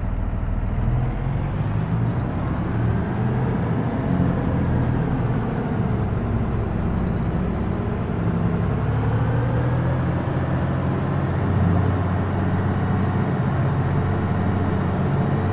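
A tractor engine revs up, its pitch rising and falling as it gathers speed.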